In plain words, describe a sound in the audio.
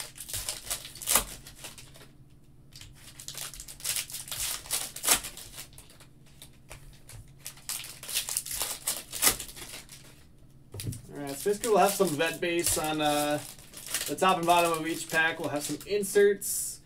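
Foil card packs crinkle and rustle in hands.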